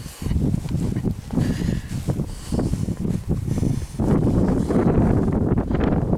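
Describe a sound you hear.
Strong wind gusts and rumbles loudly outdoors.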